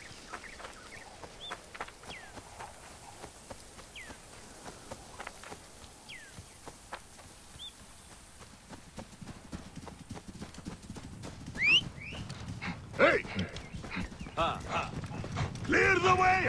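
Footsteps run quickly over dry ground.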